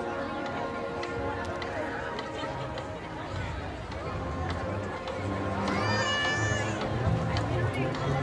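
A marching band plays brass instruments outdoors.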